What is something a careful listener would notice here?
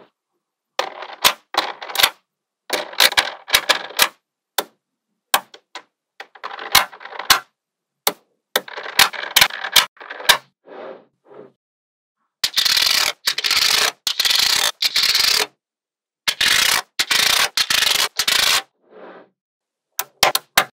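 Small metal magnet balls click and rattle against each other.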